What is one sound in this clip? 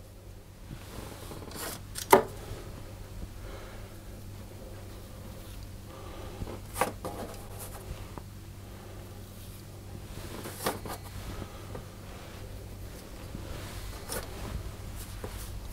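Dough rounds are set down on a metal baking tray with soft taps.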